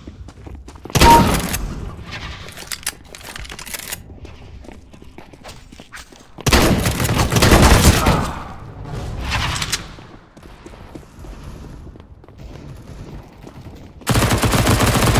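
Gunshots crack loudly in bursts.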